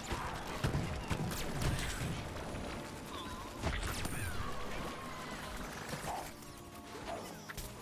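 An energy beam zaps and crackles in bursts.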